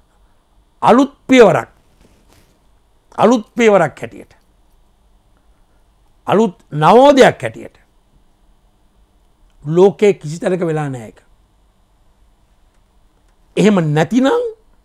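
A middle-aged man speaks forcefully into a close microphone, in short bursts with pauses.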